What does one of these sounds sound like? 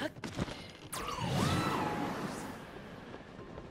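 Wind rushes past during a fast glide.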